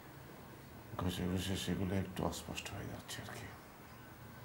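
An elderly man speaks calmly and slowly close by.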